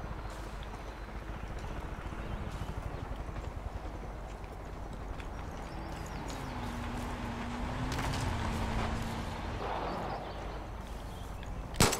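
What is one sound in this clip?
Footsteps crunch over grass and thud on wooden boards.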